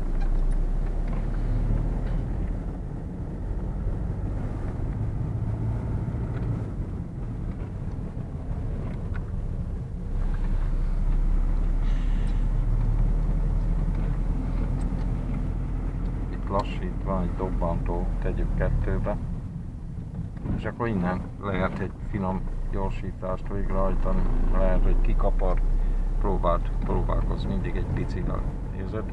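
A car engine hums steadily with road rumble inside the car.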